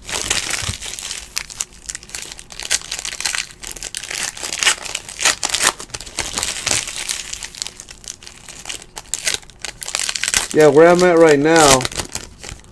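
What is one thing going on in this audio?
Foil card packs crinkle and rustle as hands tear them open.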